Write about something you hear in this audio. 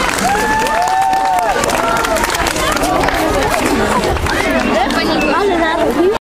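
A crowd of children and adults chatter and shout excitedly close by.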